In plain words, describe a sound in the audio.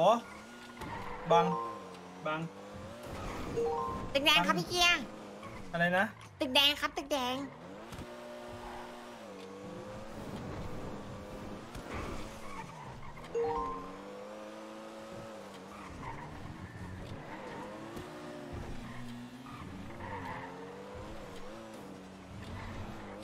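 A car engine hums and revs as it speeds along.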